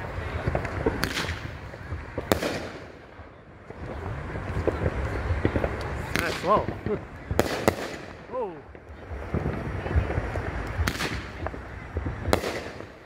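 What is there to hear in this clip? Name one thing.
Fireworks burst overhead with loud sharp bangs.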